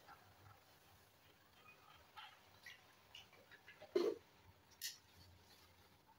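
A small plastic bottle clicks open and shut.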